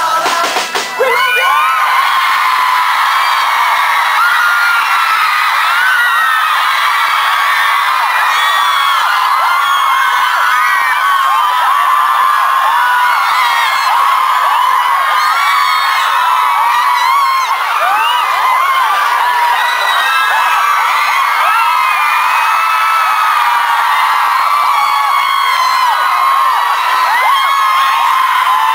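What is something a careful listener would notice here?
A crowd of young women screams and cheers close by.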